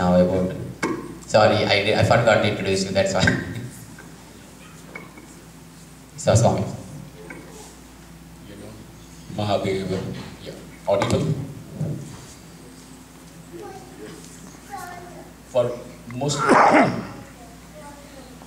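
A man speaks through a microphone in bursts, heard over loudspeakers in an echoing hall.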